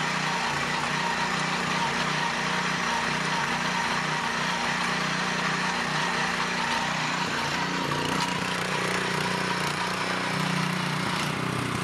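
A small petrol engine drones steadily nearby.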